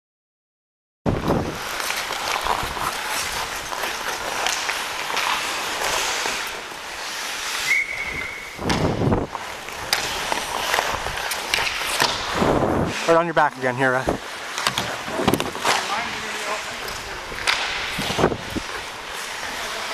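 Ice skates scrape and carve across an ice rink.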